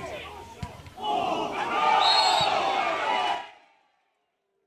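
Spectators cheer loudly and then go quiet.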